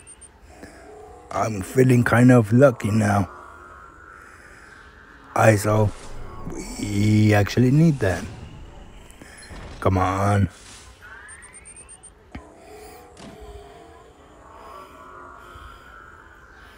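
Electronic game sound effects whoosh and chime as a vault door opens.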